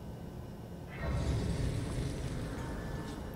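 A soft, shimmering magical swell rises.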